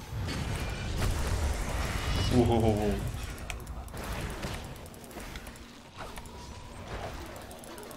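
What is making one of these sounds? Game battle effects crackle and boom.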